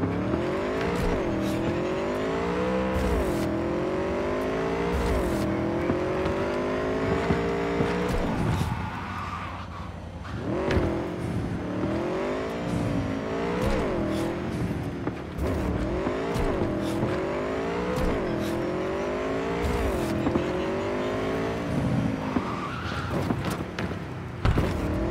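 A motorcycle engine roars, revving up and dropping back again and again as it shifts gears.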